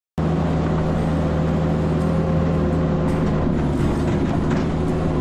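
A large engine idles loudly and steadily close by.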